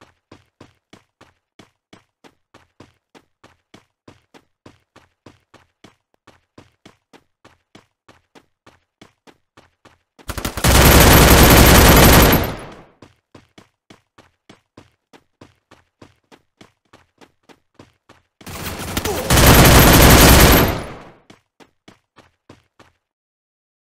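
Running footsteps patter on grass in a video game.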